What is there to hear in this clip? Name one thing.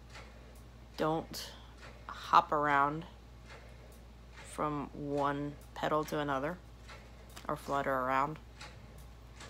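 A woman speaks with animation, close to the microphone.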